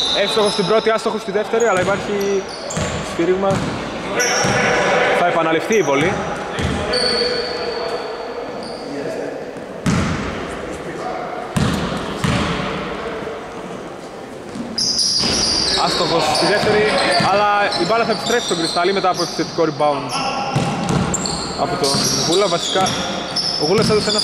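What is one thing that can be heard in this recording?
A basketball bounces on the floor with hollow thuds.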